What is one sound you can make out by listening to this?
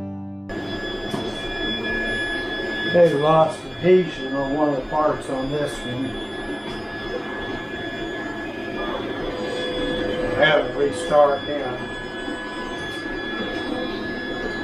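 Many machines whir and hum steadily throughout.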